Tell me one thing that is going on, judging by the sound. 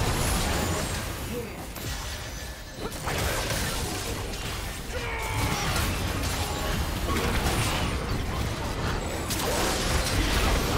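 Spell effects burst and crackle in a fast game battle.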